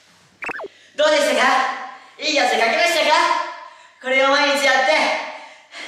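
A group of boys speaks loudly together.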